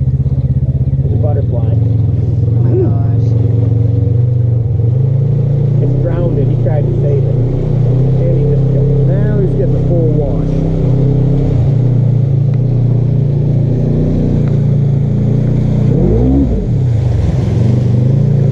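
An off-road vehicle's engine rumbles steadily and revs as it drives closer.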